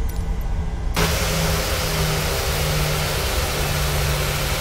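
Jet engines whine and roar loudly from close outside.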